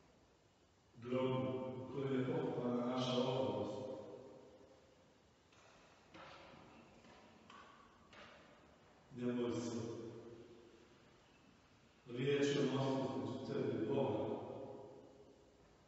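An elderly man chants aloud in an echoing hall.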